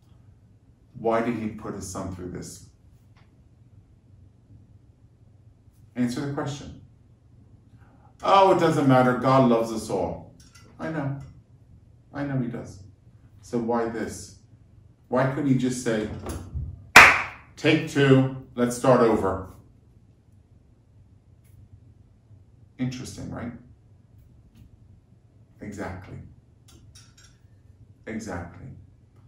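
A middle-aged man speaks calmly and with animation, close to a microphone, with pauses between phrases.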